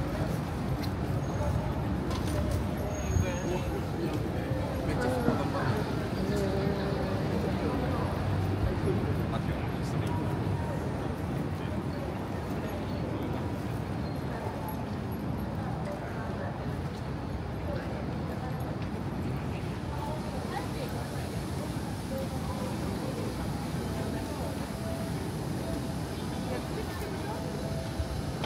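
A low murmur of city street noise fills the air outdoors.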